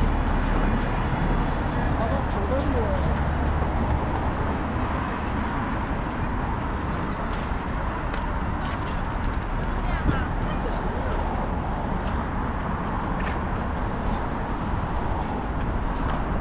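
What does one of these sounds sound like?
Electric scooters whir past on the road.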